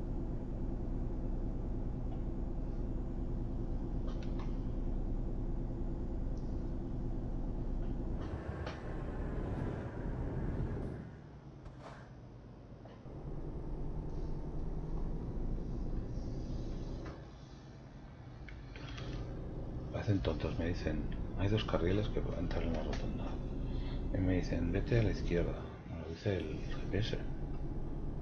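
A truck engine drones steadily, dipping quieter now and then.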